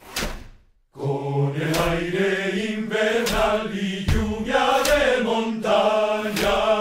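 A group of men sing together in a deep, steady chorus.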